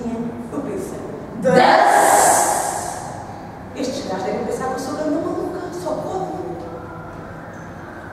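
Young performers speak with animation.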